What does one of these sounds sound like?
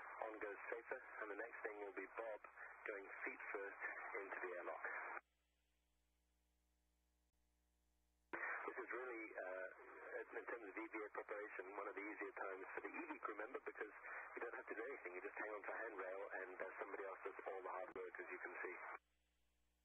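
A man talks calmly, heard through a microphone link.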